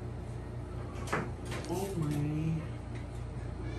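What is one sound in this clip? A young woman answers briefly in a soft voice.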